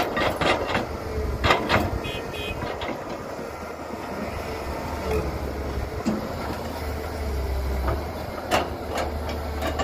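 An excavator's diesel engine rumbles steadily.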